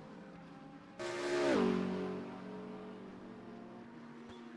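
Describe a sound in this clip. A racing car roars past and fades away.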